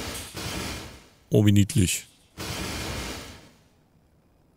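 A heavy weapon fires with sharp crackling bursts.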